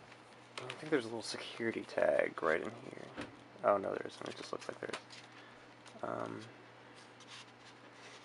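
A plastic case creaks and clicks as it is handled.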